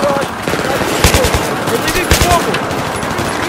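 A rifle fires short, rapid bursts close by.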